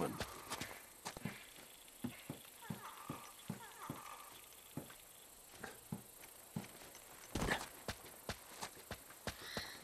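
Footsteps patter on soft ground.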